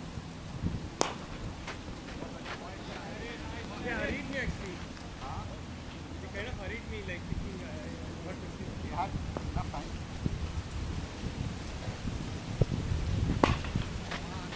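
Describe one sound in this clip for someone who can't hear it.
A cricket bat sharply strikes a ball.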